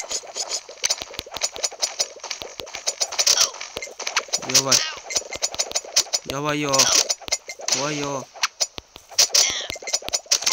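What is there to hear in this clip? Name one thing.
Quick game sound effects of slicing and hits clatter rapidly.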